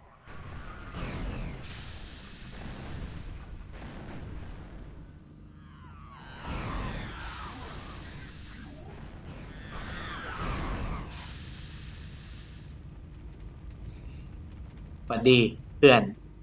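Explosions boom and echo.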